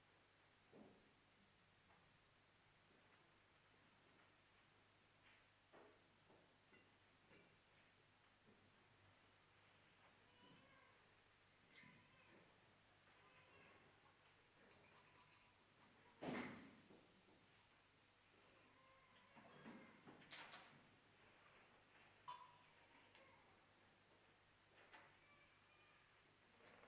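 Faint footsteps and knocks echo through a large, quiet room.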